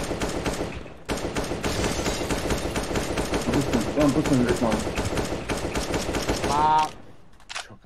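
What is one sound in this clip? Rapid rifle fire rattles loudly.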